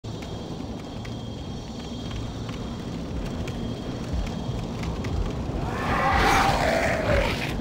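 Heavy armoured footsteps thud on stone.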